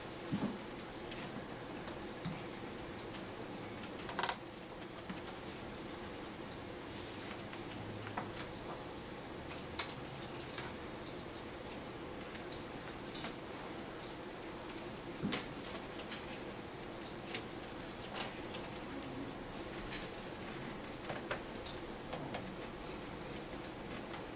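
Feet knock and thud on a wooden stage.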